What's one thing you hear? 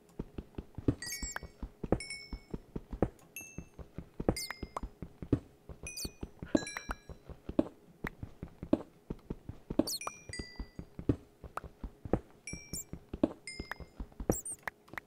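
Short video game pops sound as mined items are picked up.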